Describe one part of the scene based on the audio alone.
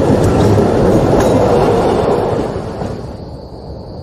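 A tram rumbles past close by and fades away.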